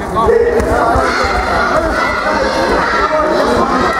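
Kicks thud against padded chest protectors.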